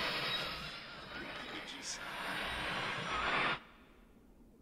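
Loud static crackles and hisses, then cuts off.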